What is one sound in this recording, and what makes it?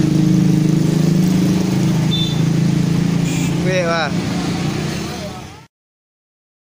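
Motorbike engines hum steadily as they ride past.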